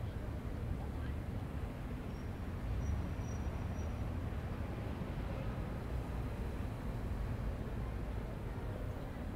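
A train's electric engine hums low and steady.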